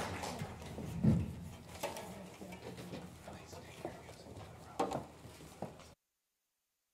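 Chairs and music stands knock and scrape on a stage.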